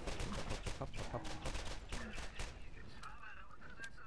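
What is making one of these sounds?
Explosions burst with loud booms and crackling flames.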